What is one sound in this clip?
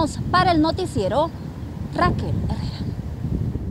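A young woman speaks clearly into a microphone, close by.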